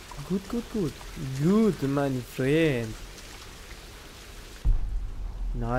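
Water rushes down a waterfall.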